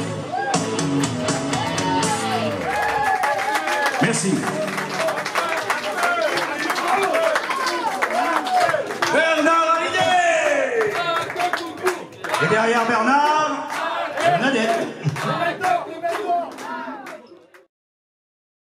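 A man sings loudly into a microphone.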